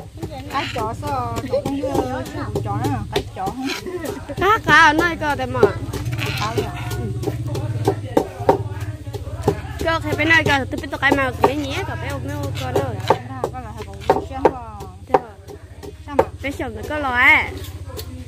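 A spoon scrapes and clinks against a clay bowl.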